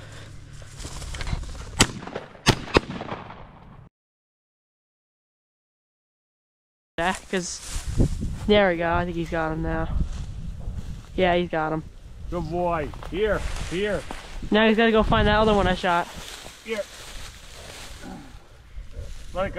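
Dry grass rustles and crunches underfoot.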